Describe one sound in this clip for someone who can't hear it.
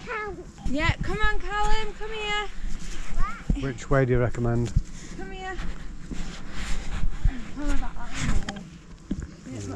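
A hand rubs and bumps against the microphone.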